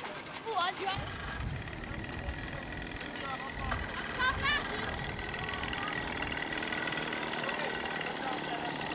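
An outboard motor idles and hums on the water.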